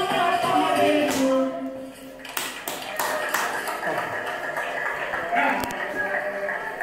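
Music plays from a small speaker in a room.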